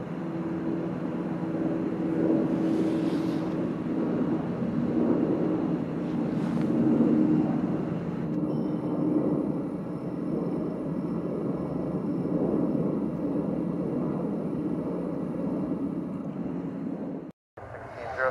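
A jet engine whines and rumbles steadily as an airliner taxis.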